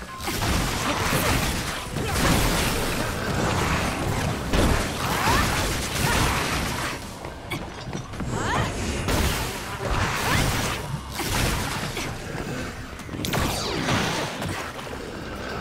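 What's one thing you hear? Electric zaps and blasts crackle loudly in a video game battle.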